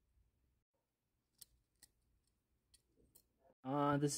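Small plastic parts click and snap as they are handled.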